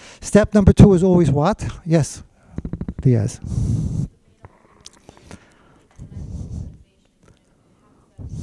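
A man speaks with animation into a microphone in an echoing room.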